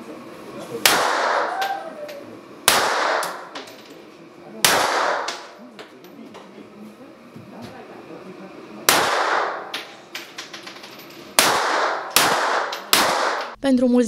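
Pistol shots ring out one at a time, echoing loudly in an indoor range.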